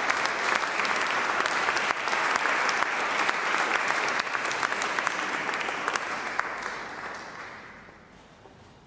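An audience applauds in a large echoing hall, then the clapping fades away.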